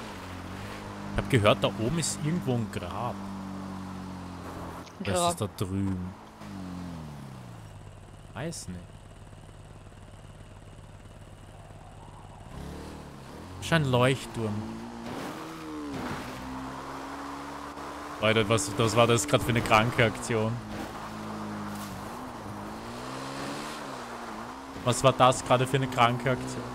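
A motorbike engine hums and revs up and down.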